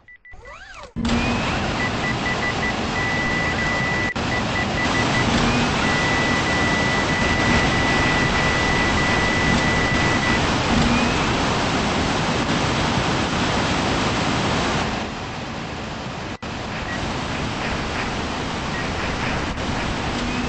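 A jet thruster roars steadily.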